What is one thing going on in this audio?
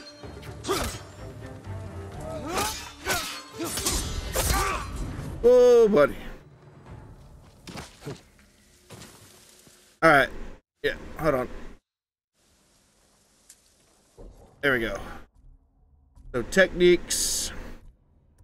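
A man talks with animation into a microphone, close up.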